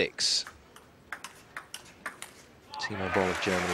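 A table tennis ball clicks quickly back and forth off paddles and the table.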